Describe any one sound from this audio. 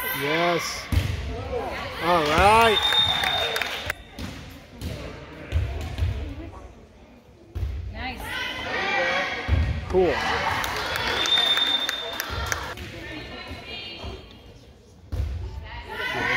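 A volleyball is struck with dull thuds.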